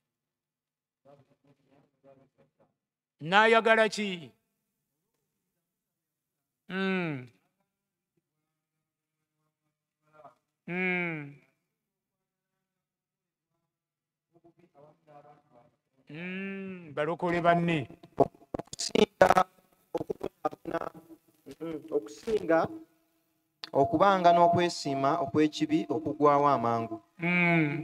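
An elderly man speaks into a microphone with long pauses, then more steadily.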